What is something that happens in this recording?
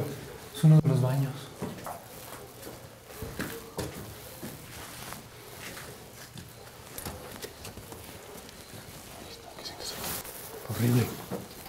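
A young man speaks in a low voice nearby.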